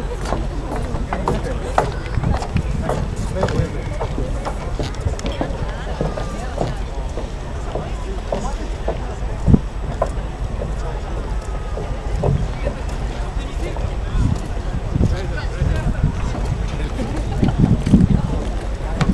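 Water laps gently against a harbour edge.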